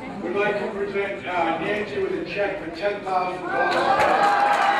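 A man speaks through a loudspeaker in a large room.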